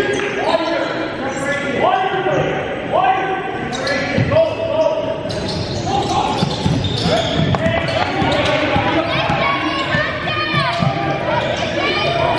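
Sneakers squeak sharply on a hardwood floor in an echoing gym.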